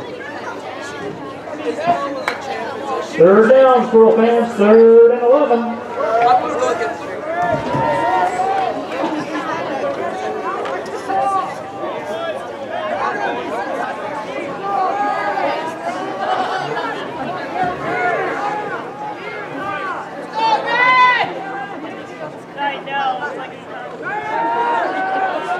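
A crowd chatters and cheers in the background.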